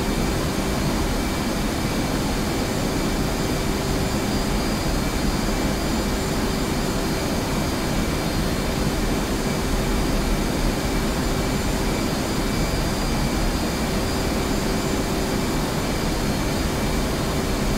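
An aircraft's engines roar steadily in flight, heard from inside the cockpit.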